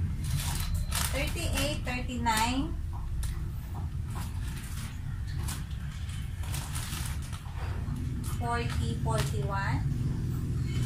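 A young woman speaks close by in a high, lively voice.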